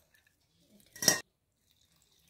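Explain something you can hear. A metal bowl clinks against a metal jar.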